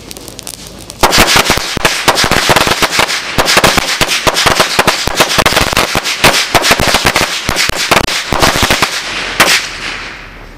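A long string of firecrackers bursts in a rapid crackling volley outdoors.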